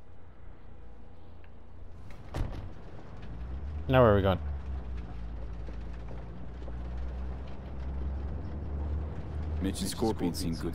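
A car engine hums low and steady.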